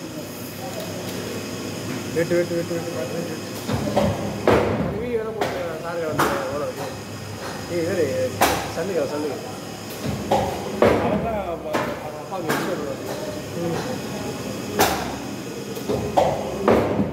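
An industrial machine hums steadily.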